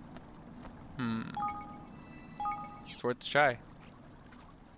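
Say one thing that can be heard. Soft chiming blips sound as menu options are picked.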